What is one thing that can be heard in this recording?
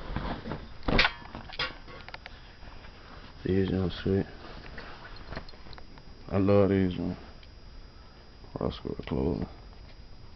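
Cloth rubs and rustles against the microphone close up.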